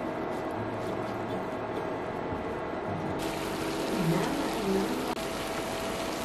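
A spatula scrapes and stirs food in a sizzling pan.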